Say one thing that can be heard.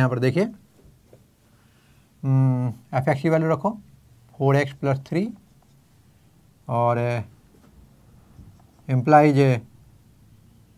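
An elderly man speaks calmly in short phrases with pauses.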